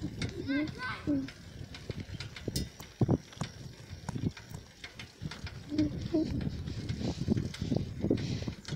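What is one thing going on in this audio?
Bicycle tyres roll over rough asphalt with frequent rattles and bumps.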